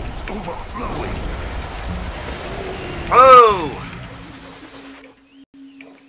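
A magic spell whooshes and swirls.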